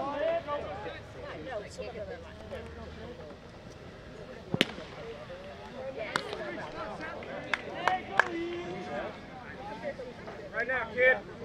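A crowd of spectators chatters and cheers outdoors.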